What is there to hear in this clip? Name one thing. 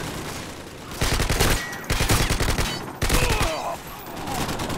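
A silenced rifle fires quick muffled shots.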